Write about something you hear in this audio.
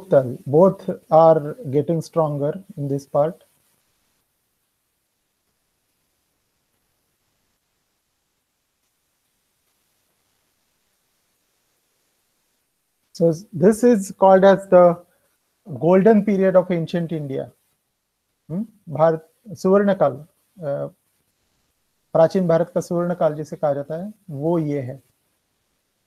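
A middle-aged man speaks calmly over an online call, pausing between phrases.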